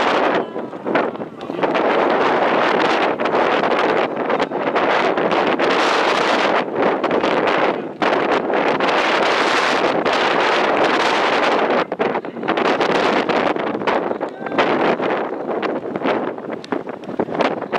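Wind blusters loudly across the microphone outdoors.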